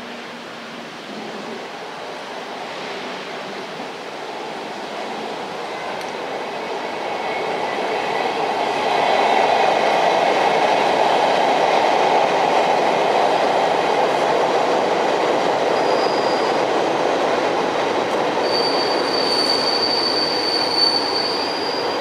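A train approaches and rumbles past, growing louder.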